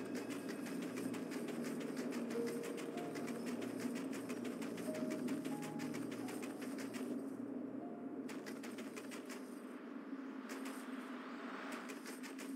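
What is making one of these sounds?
Feet patter quickly on snow as a large bird runs.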